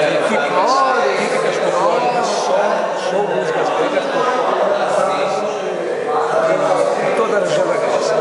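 A middle-aged man talks up close with animation.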